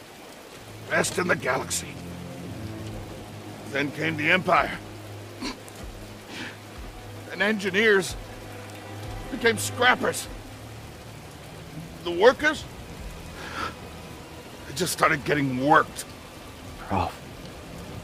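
A man with a deep, gruff voice speaks slowly and menacingly, close by.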